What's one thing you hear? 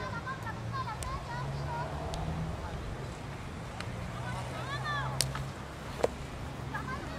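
A hockey stick smacks a ball.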